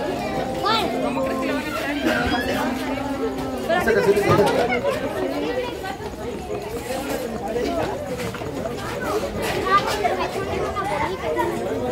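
Several women talk and laugh together nearby.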